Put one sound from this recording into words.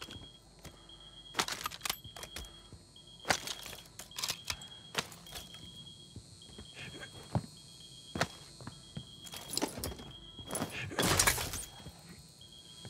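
A gun clicks and clatters as weapons are picked up and swapped.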